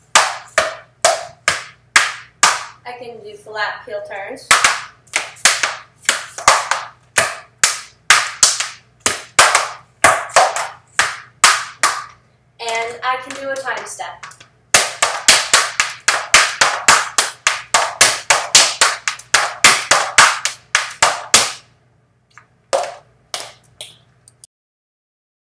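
Tap shoes click and tap in quick rhythms on a hard floor.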